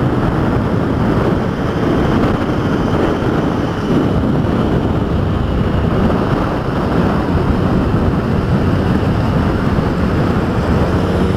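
A motorcycle engine hums steadily close by.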